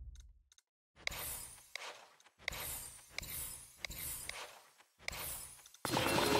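Short chiming menu sounds play as options are picked.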